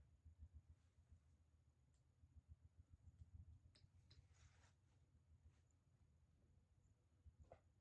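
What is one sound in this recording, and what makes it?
Hair rustles softly as hands handle it.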